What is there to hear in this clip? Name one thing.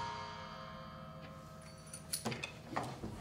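A sustained chord rings out from violins and a cello, then fades.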